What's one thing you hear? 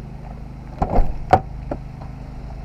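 A car door swings open.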